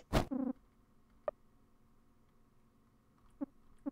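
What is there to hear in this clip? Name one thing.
A short electronic blip sounds as a menu opens.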